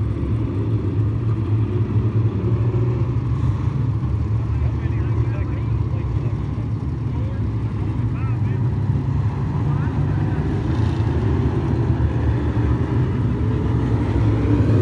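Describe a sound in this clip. Race car engines roar loudly and steadily around a dirt track.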